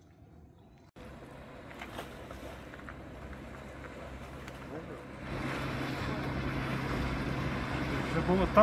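A boat engine hums steadily and grows louder as the boat comes closer.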